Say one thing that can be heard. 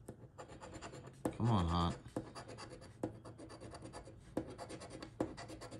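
A coin scrapes rapidly across a scratch card.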